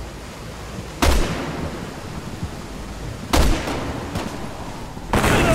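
A rifle fires loud, echoing shots.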